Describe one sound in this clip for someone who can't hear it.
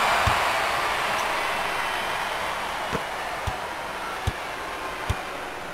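A crowd cheers and roars steadily in a large arena, slowly quieting.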